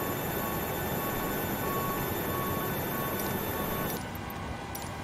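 A parked airliner's engine hums loudly and steadily outdoors.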